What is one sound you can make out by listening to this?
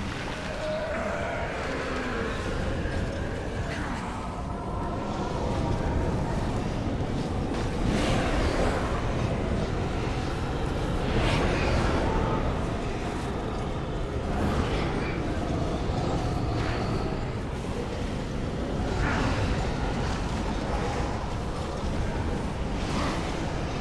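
Magic spells crackle and burst in a noisy fantasy battle.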